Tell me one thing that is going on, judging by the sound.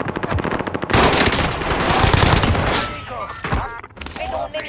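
A rifle fires rapid, loud bursts of shots.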